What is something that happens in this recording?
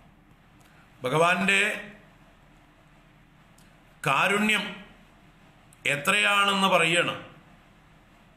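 An elderly man chants in short, sung phrases close to a microphone.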